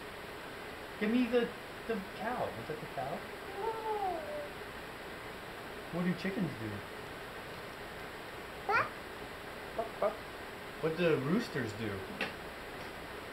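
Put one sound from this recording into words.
A toddler babbles and vocalizes nearby.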